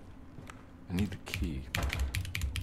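A locked door handle rattles.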